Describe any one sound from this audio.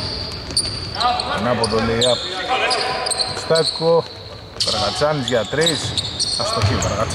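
Men shout to each other across the court.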